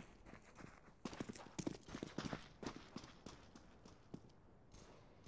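Game footsteps run on stone.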